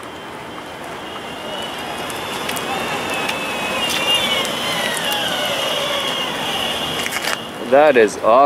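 An electric skateboard motor whines as the board rolls over pavement.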